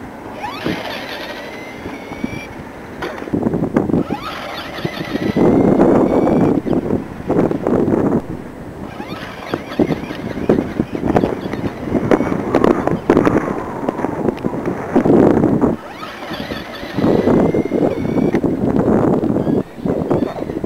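A small electric motor whines, revving up and down as a toy car speeds along.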